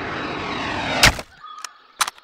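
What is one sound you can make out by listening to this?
A bullet strikes with a sharp crack.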